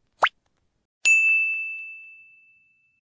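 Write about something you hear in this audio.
A small bell dings and rings out.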